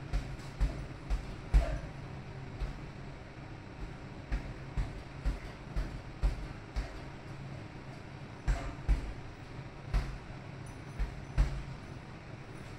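Feet thud and shuffle on a padded floor in quick, uneven steps.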